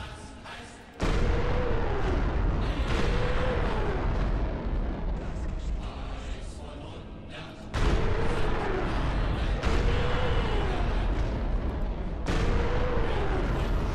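A tank cannon fires with a heavy boom and a long rumble.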